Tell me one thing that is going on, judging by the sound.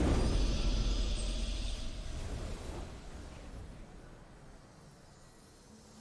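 A triumphant game fanfare rings out and slowly fades away.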